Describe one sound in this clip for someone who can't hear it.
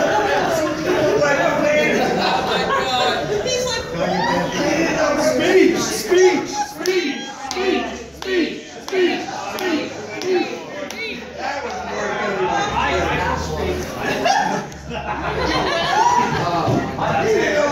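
A crowd of men and women talk and call out at once, close by.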